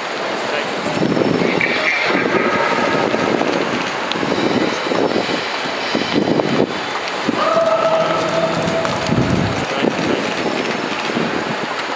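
Several men talk and call out loudly nearby.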